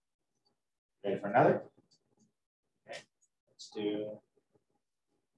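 A man speaks briefly and calmly through a microphone.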